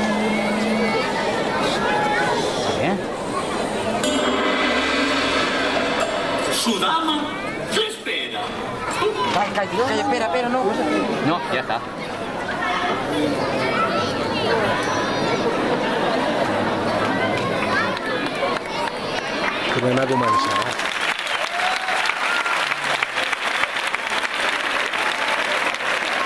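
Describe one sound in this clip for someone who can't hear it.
Children speak with animation through loudspeakers in a large echoing hall.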